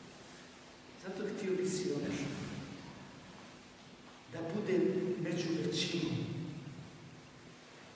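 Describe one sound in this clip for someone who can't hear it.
An elderly man speaks calmly and expressively through a microphone in a reverberant hall.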